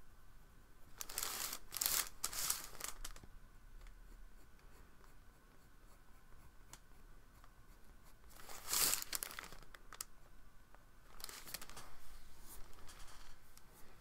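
Paper rustles and shifts on a table.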